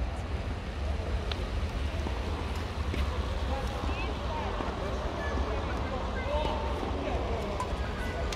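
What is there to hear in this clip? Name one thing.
Badminton rackets strike a shuttlecock with sharp taps.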